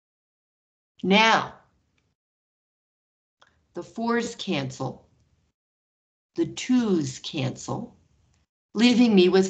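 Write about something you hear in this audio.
A woman speaks calmly through a microphone in short phrases.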